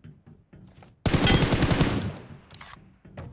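A rifle fires a loud shot that rings out and fades.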